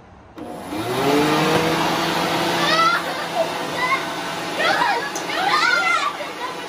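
A leaf blower whirs up to speed and roars steadily.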